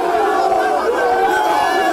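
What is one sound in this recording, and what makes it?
A man nearby shouts with excitement.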